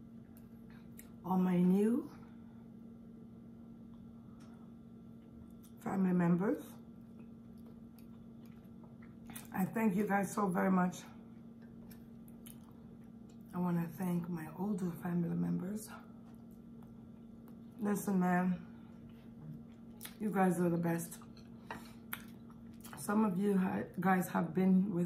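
A fork scrapes and clinks against a plate.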